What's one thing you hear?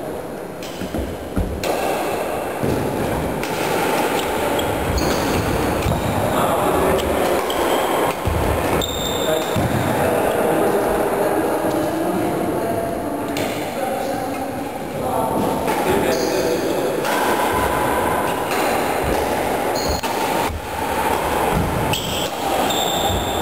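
A badminton racket strikes a shuttlecock in a large echoing sports hall.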